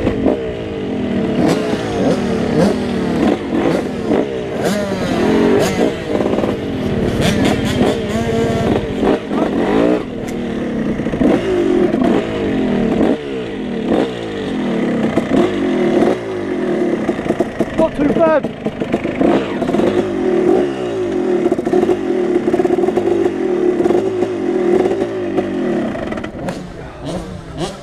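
A dirt bike engine revs up and down close by, rising and falling in pitch.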